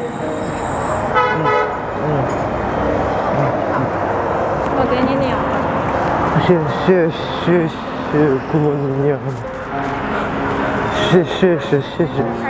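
Street traffic murmurs steadily in the background.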